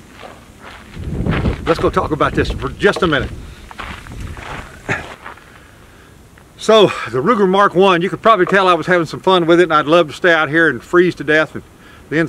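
A middle-aged man talks calmly and clearly, close by.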